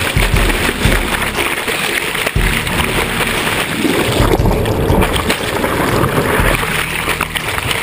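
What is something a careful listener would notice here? Water churns and rushes, heard from underwater.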